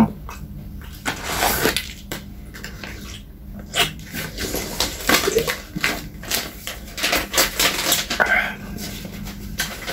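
A snack packet crinkles and rustles.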